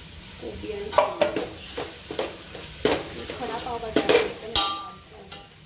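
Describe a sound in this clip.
A spoon taps against the rim of a pot.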